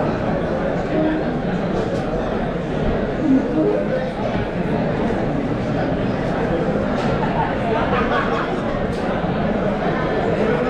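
A drummer plays a drum kit loudly at close range.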